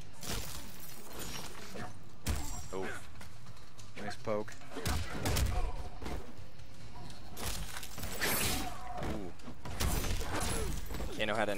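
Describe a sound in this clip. Ice crackles and shatters in a sudden burst.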